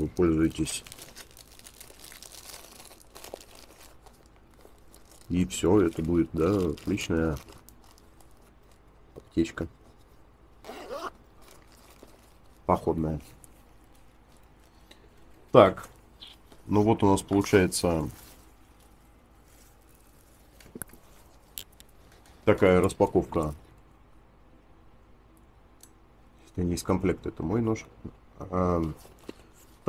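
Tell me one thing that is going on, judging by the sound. A nylon pouch rustles and crinkles in someone's hands.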